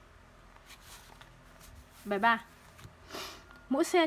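A sheet of paper rustles as it slides into place.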